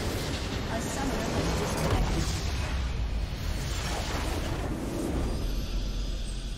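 A huge structure explodes with a deep rumbling blast.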